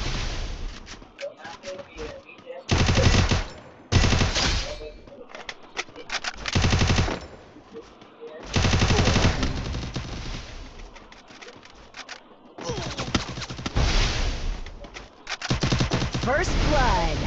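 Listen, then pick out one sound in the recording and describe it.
Rapid bursts of gunfire crackle loudly.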